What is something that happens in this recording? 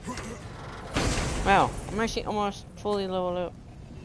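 A heavy chest lid creaks open.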